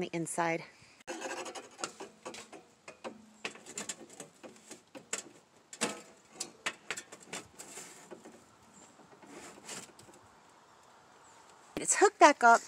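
A metal stovepipe scrapes and clanks as it is pushed into place.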